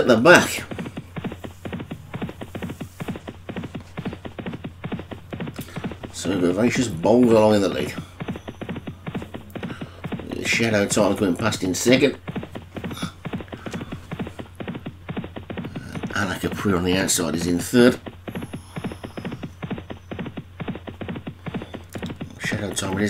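Horses' hooves gallop rapidly on turf.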